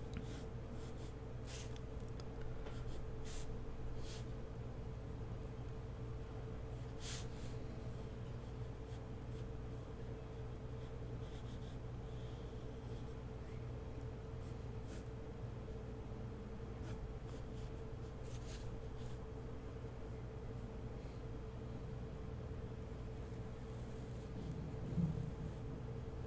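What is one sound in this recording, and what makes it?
A pencil scratches softly across paper.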